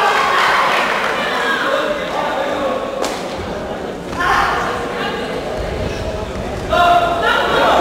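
A crowd shouts and cheers in an echoing indoor hall.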